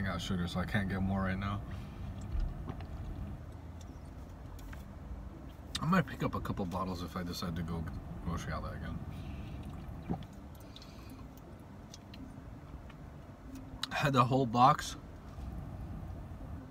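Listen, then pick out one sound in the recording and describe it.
A man gulps down a drink.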